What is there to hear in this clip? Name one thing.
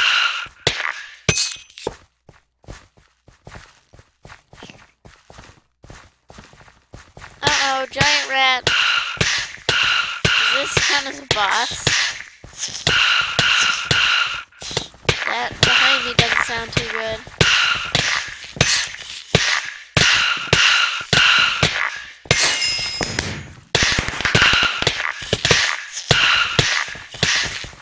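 A sword strikes a creature again and again with quick, sharp hits.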